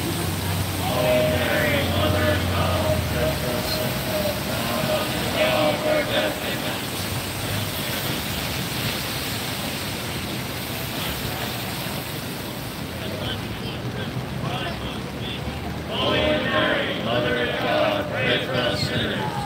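A crowd prays aloud in unison at a distance.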